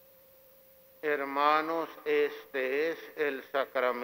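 A man chants slowly through a microphone in an echoing hall.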